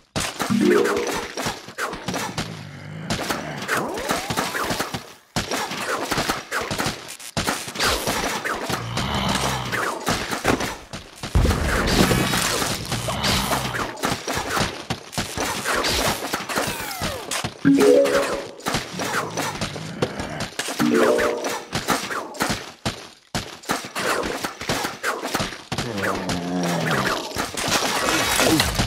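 Video game sound effects of frozen peas firing and icy blasts crackle and pop.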